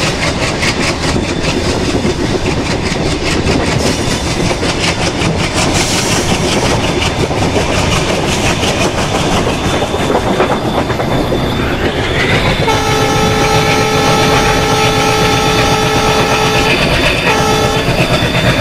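A train engine rumbles steadily while running.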